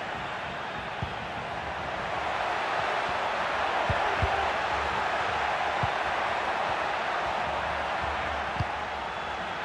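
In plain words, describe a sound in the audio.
A football is kicked with dull thumps now and then.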